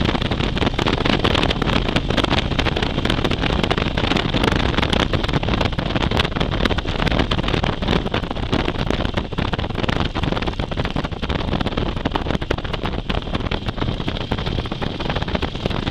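Wind roars loudly and buffets steadily against a fast-moving motorcycle.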